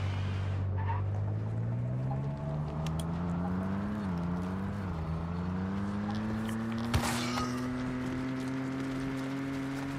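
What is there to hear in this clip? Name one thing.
A car engine hums and slowly revs higher as the car speeds up.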